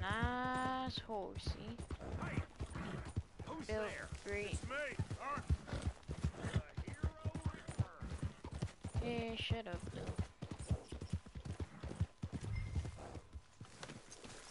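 A horse's hooves clop steadily on a dirt track.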